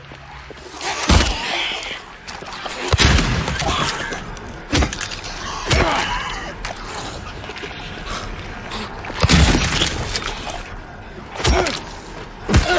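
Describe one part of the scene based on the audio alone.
A pistol fires loud shots in an echoing space.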